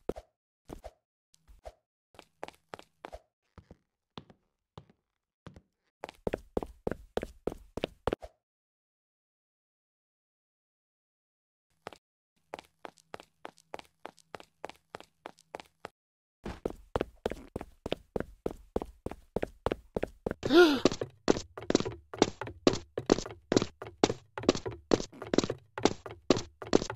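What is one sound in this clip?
Quick footsteps patter along steadily.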